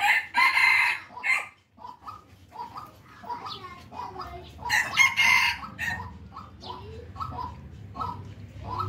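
Puppies chew and lap food from a bowl.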